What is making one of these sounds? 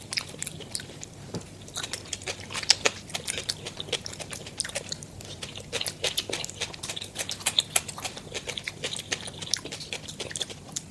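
A woman chews crunchy food close to a microphone.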